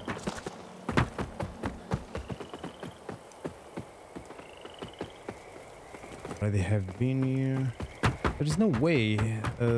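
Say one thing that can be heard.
Footsteps thud on creaking wooden planks.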